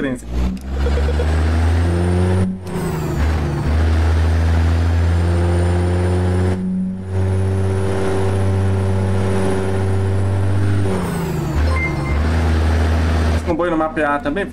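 A truck engine drones loudly and steadily.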